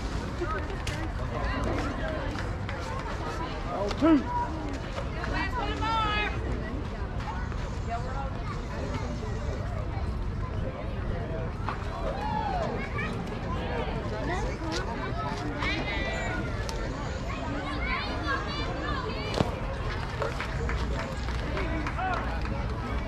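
Outdoors, a crowd of spectators chatters and cheers throughout.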